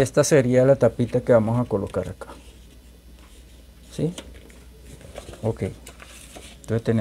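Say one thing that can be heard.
Paper rustles as it is moved.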